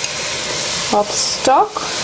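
Liquid pours into a pot with a soft trickle.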